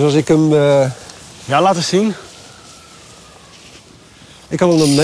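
A man calls out loudly in long, drawn-out cries nearby, outdoors.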